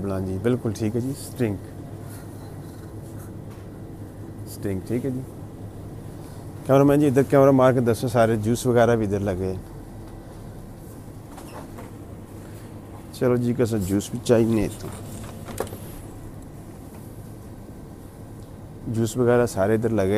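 A middle-aged man talks calmly and close by, in short bursts.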